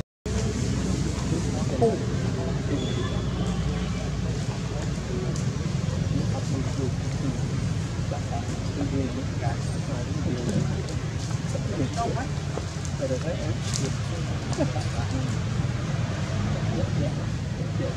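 Monkeys' feet rustle dry leaves on the ground.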